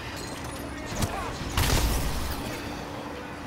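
A gun fires a loud shot.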